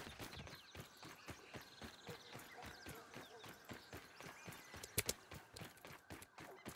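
Footsteps crunch quickly on sand and grass.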